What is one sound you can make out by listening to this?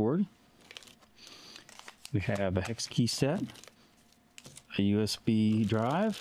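Small packets are set down on a table with light taps.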